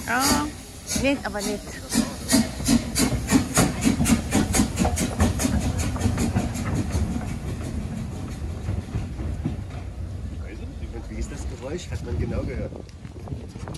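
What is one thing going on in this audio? Train wheels clatter and squeal over the rails.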